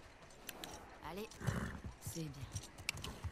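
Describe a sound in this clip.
A young woman speaks briefly and calmly.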